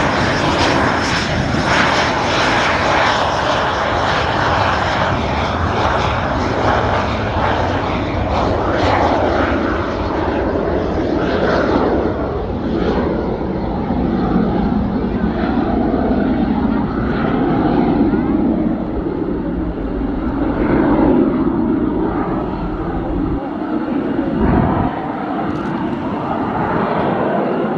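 A jet engine roars loudly as a jet rolls down a runway and takes off.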